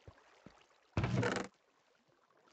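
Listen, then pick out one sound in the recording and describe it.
A wooden chest creaks open in a game.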